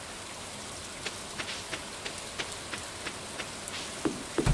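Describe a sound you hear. Footsteps patter softly on a dirt path.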